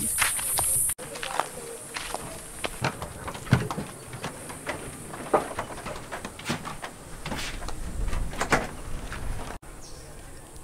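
Footsteps thud on wooden boards.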